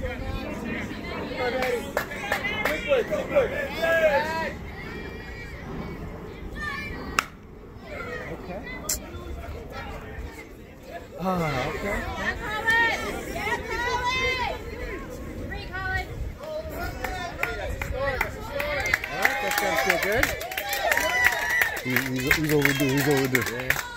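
Young players shout and cheer across the field.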